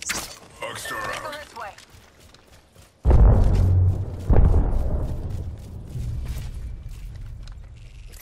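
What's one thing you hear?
Footsteps thud on grass.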